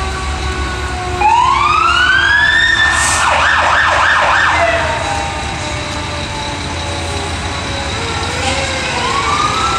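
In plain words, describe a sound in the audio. A fire truck engine rumbles as it rolls slowly closer.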